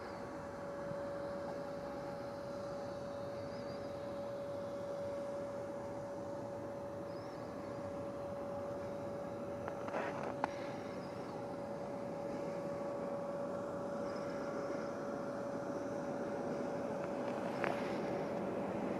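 A jet engine hums and whines steadily as an airliner taxis close by.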